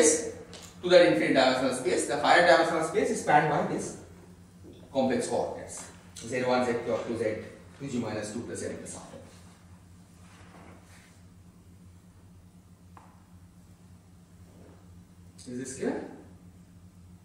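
A man lectures through a microphone in an echoing hall, speaking calmly with pauses.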